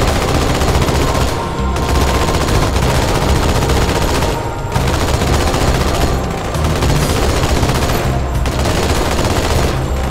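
A heavy vehicle engine rumbles and roars.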